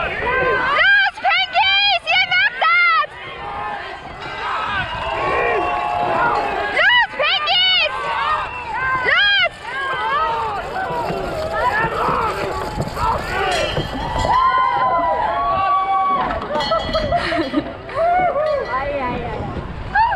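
A crew of rowers shouts loudly in rhythm, close by.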